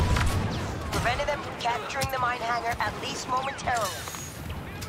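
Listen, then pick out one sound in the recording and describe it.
Laser guns fire in quick bursts.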